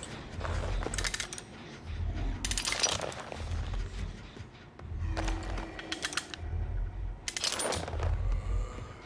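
A metal bear trap clanks as it is set.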